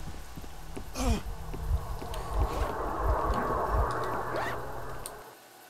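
Footsteps thud on rough ground.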